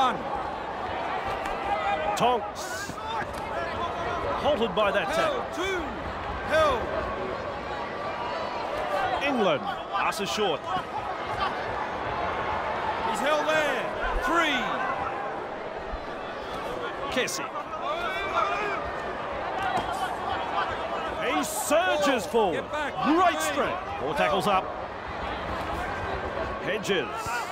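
A large stadium crowd roars and cheers steadily.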